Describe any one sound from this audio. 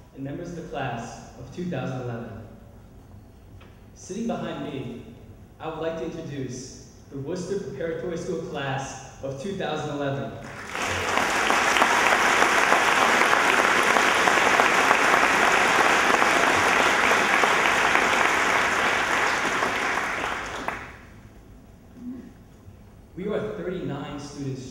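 A young man speaks into a microphone over loudspeakers in a large hall.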